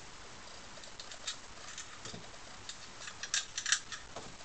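Plastic parts click and tap as fingers handle them.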